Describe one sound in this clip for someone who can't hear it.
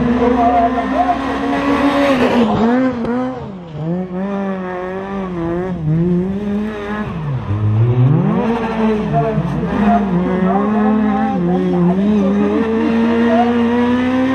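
Tyres screech on tarmac as a car slides through a bend.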